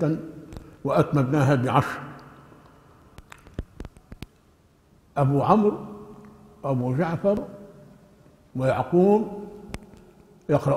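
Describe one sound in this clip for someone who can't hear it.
An elderly man speaks slowly and calmly into a microphone, with pauses between phrases.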